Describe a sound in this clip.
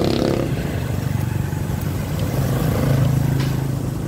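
Another motorbike engine rumbles close by as it passes.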